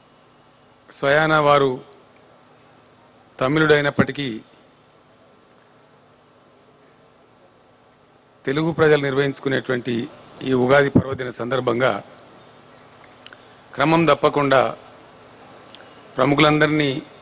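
An elderly man speaks slowly through a microphone, with long pauses.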